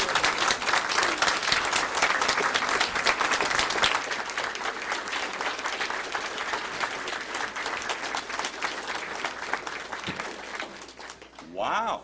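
A congregation applauds in a large echoing hall, fading away.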